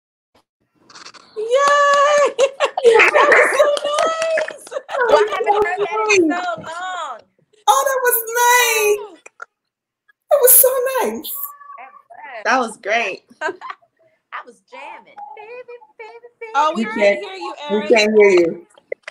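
Women talk and laugh with excitement over an online call.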